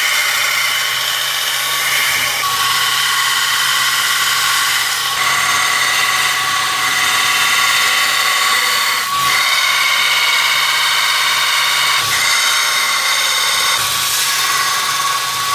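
A stone edge grinds harshly against a sanding belt.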